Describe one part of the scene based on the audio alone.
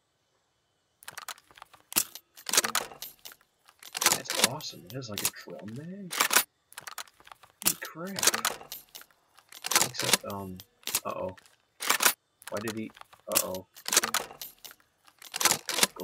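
A rifle's magazine clicks out and snaps back in, again and again.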